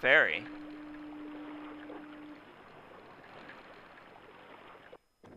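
Water laps gently against a dock.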